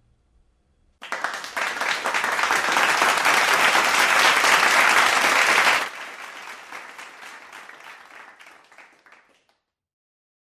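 An audience applauds and then the clapping fades.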